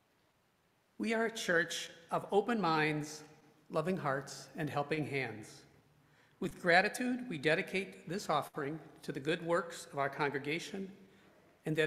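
A man speaks calmly into a microphone, heard over a loudspeaker in a large room.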